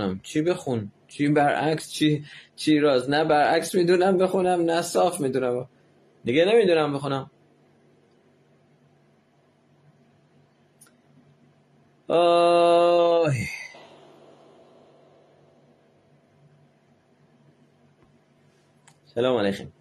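A middle-aged man speaks calmly and close up.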